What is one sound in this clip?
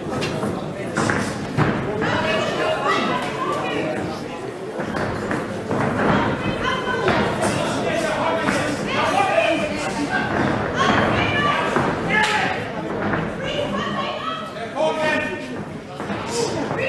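Spectators shout and cheer in an echoing indoor hall.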